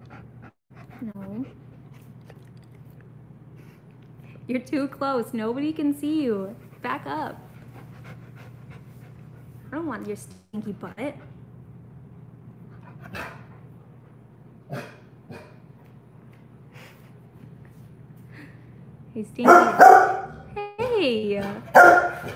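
A dog whines and yowls close by.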